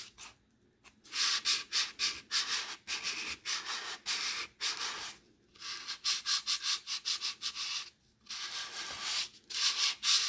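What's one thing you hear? Sandpaper rubs back and forth on wood in quick, rasping strokes.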